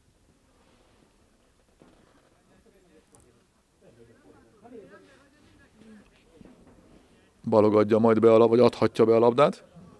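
A few spectators murmur quietly nearby.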